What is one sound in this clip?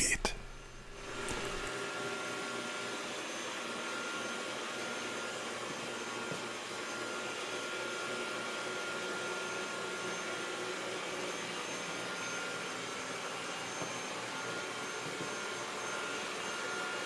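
A robot vacuum cleaner hums steadily as it rolls along.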